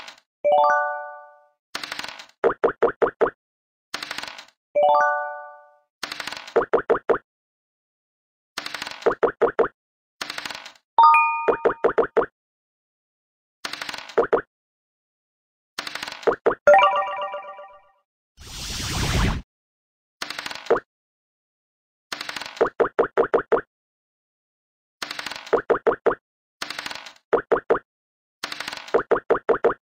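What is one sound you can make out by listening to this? Game dice rattle and roll.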